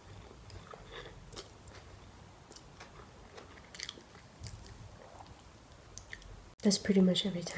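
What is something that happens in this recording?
A young woman slurps and chews noodles close to the microphone.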